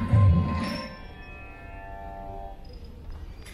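Music plays over loudspeakers in a large hall.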